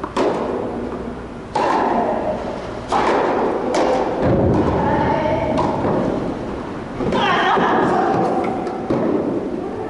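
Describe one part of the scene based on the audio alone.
A tennis ball is struck with a racket, echoing in a large hall.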